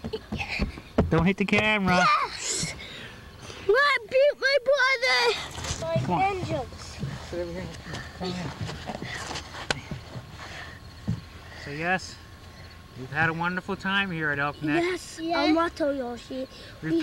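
A young boy speaks excitedly up close.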